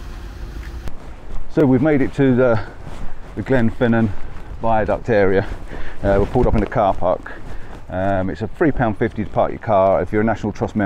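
A man talks close by, outdoors in wind.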